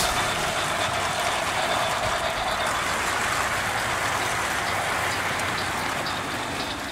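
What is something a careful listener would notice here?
A model train rumbles and clatters along its track.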